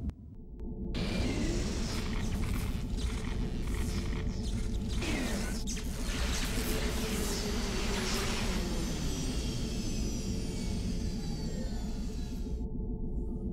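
Electricity crackles and hisses in sharp bursts.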